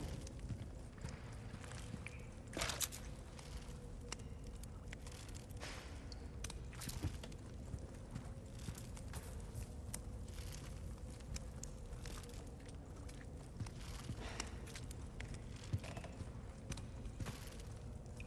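Footsteps crunch softly on a rocky floor.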